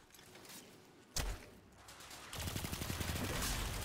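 A rapid-fire gun shoots in bursts.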